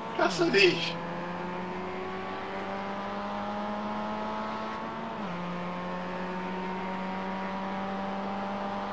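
A racing car engine drones at a steady high pitch, shifting gear now and then.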